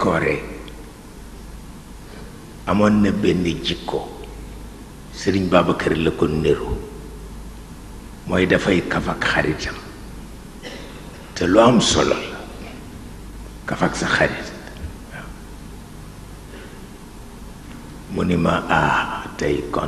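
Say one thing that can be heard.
An elderly man speaks slowly and solemnly into microphones, with pauses between phrases.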